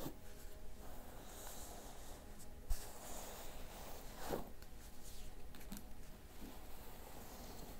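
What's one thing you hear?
Fingers rustle through hair.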